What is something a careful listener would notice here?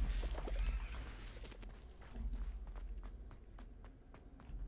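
Footsteps tread steadily on stone.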